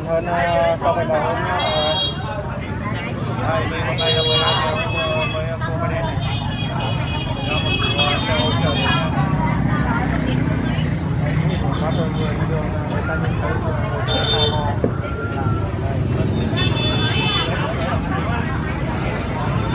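Motorbike engines idle and rumble nearby.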